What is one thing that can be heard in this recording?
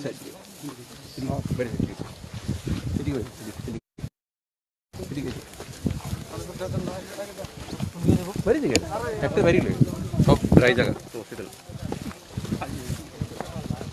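Several men talk over one another nearby, outdoors.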